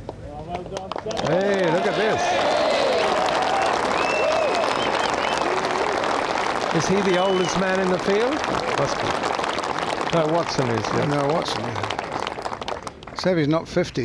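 A large crowd cheers and applauds outdoors.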